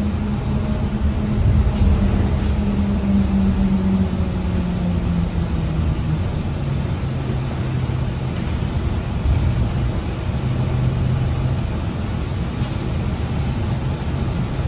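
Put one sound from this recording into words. A bus engine hums steadily from inside the bus, its pitch shifting as it drives.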